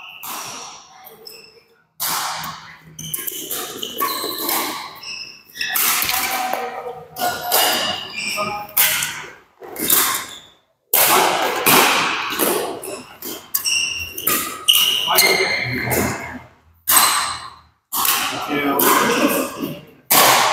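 A shuttlecock is struck sharply by rackets, back and forth.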